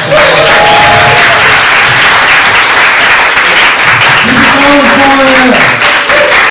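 People in a crowd cheer and whoop.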